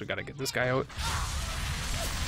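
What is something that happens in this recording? An explosion bursts with a loud boom.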